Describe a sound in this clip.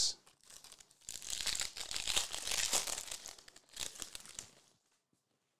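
Trading cards rustle as hands shuffle them.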